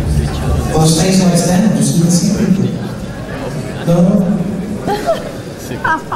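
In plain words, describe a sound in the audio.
A live band plays loudly, heard from within a crowd in a large echoing hall.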